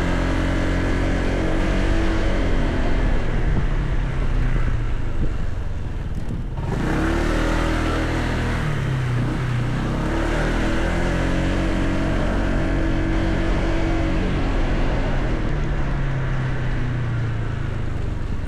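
A motor scooter engine hums steadily, rising and falling in pitch as it speeds up and slows down.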